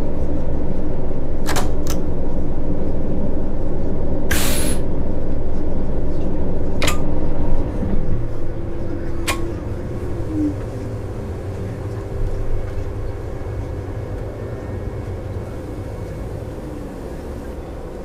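A bus engine idles with a low, steady rumble that drops at about eight seconds.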